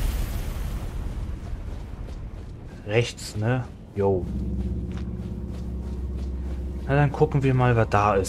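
Footsteps run over a stone floor.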